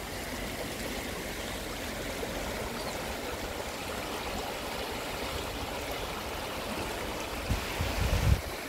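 A shallow stream rushes and gurgles steadily over rocks.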